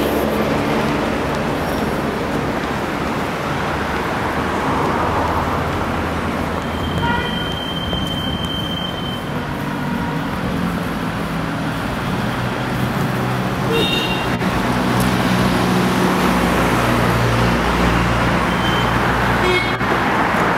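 Traffic rumbles steadily along a street outdoors.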